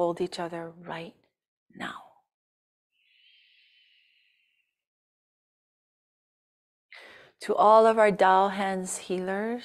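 A woman speaks calmly through a microphone, as if on an online call.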